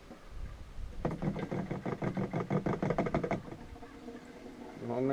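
Liquid gurgles through a hose into a canister.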